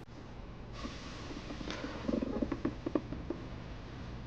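Pages of a plastic folder rustle as they are turned.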